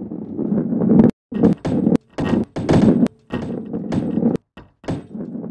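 Hollow boxes clatter and tumble as a ball smashes through them.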